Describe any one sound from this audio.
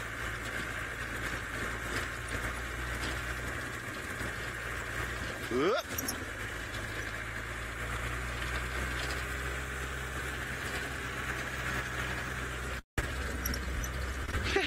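A vehicle engine rumbles steadily while driving over rough ground.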